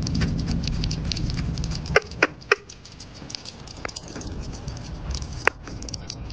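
A small animal chews and nibbles wet food with quick smacking clicks.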